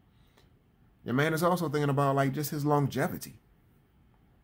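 A man speaks calmly and expressively close to a microphone.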